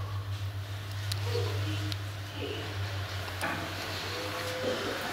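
An elevator hums steadily as it moves between floors.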